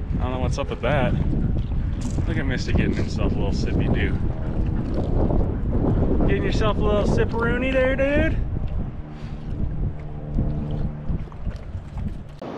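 A dog wades and splashes through shallow water.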